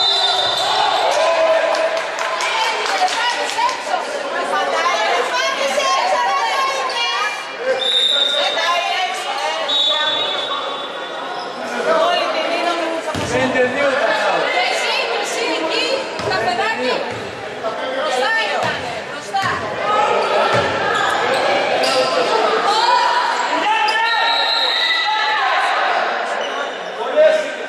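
Young women shout and call out to each other in an echoing hall.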